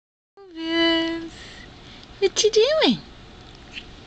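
A puppy lets out high, whining yelps close by.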